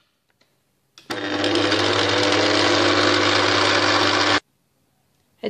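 A stand mixer motor whirs steadily.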